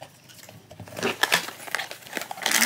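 A cardboard box flap is pulled open with a soft scrape.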